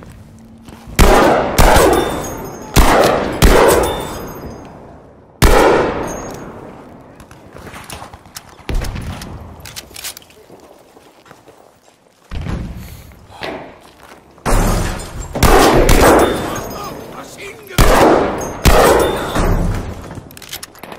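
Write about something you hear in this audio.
Rifle shots crack loudly and echo down a long concrete tunnel.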